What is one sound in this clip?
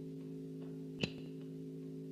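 A cigarette lighter clicks.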